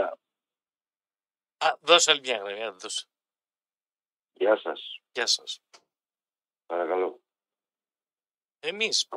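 A man speaks in short bursts through a radio broadcast.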